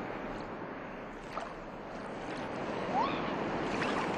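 Small waves lap at a shore.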